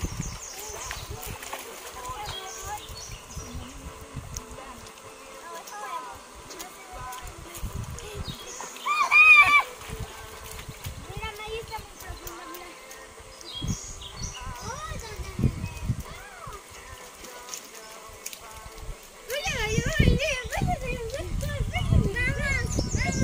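Young girls shout and chatter outdoors.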